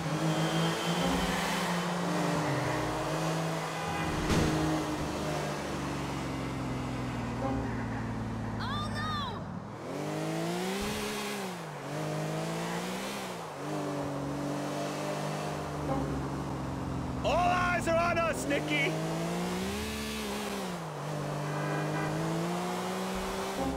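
A sports car engine roars and revs up and down.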